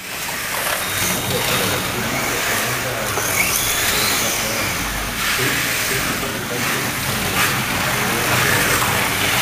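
Slot cars whir and buzz along a track.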